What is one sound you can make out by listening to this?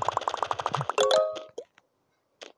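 A short cheerful jingle chimes as a level ends.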